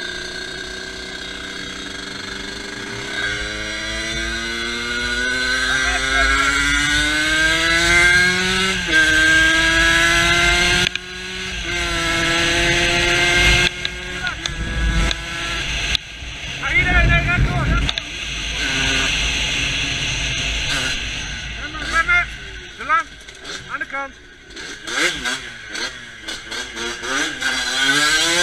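A motorcycle engine revs and rises in pitch as the bike speeds up, then drops and revs again.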